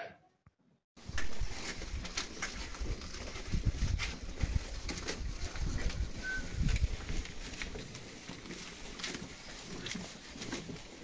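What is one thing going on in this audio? Goats munch and rustle dry hay close by.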